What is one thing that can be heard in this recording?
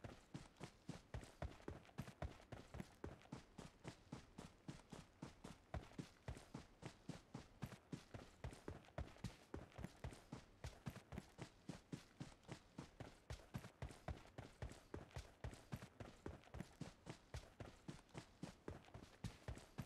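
Quick footsteps run steadily over grass and earth.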